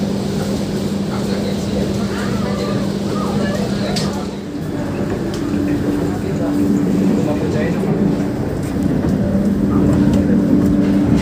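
A train rumbles steadily along the tracks with a low hum.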